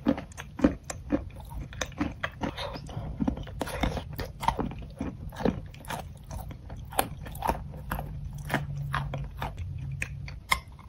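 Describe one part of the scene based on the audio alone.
Fingers squish and pull at a soft, sticky mass.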